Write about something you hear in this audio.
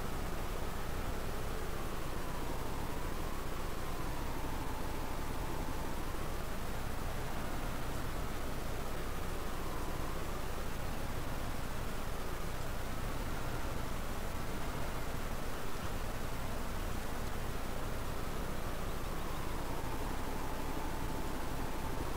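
A tractor engine hums and rises and falls in pitch.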